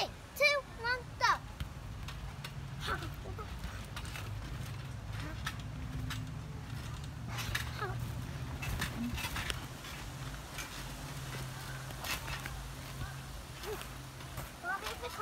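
A trampoline mat creaks and thumps under a child's bouncing feet.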